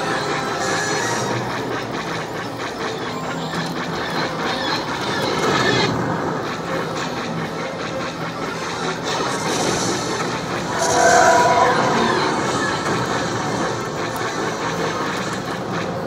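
An arcade game plays loud laser blasts and explosions.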